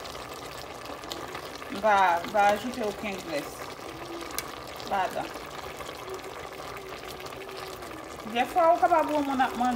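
A metal spoon scrapes and stirs vegetables in a metal pot.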